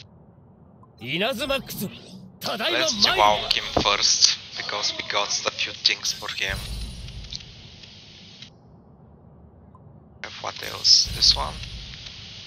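Magical chimes and whooshes ring out.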